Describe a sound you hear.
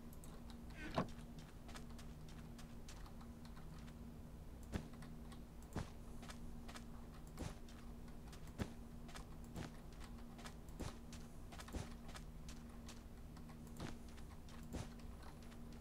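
Blocks are placed one after another with soft, dull thuds.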